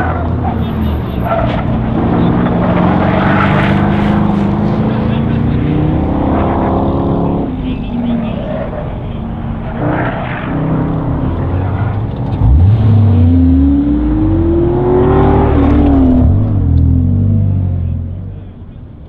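A car engine revs hard, rising and falling as the car races around.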